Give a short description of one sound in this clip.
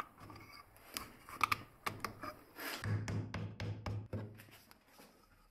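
A hammer taps on wood.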